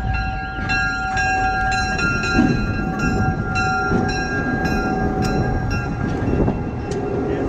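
A diesel locomotive rumbles as it rolls past slowly.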